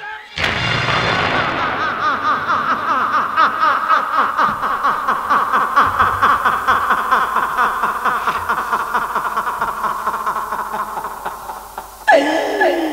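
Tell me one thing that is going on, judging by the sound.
A man shouts dramatically through a loudspeaker microphone.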